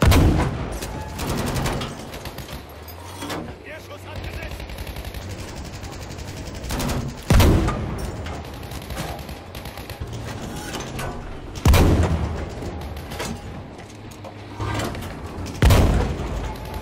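A tank cannon fires with loud booms.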